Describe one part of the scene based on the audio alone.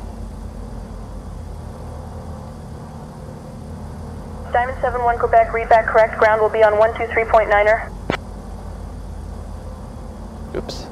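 An aircraft engine hums low and steady.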